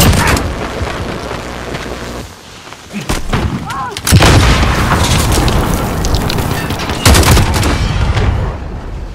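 Rapid gunshots fire in loud bursts.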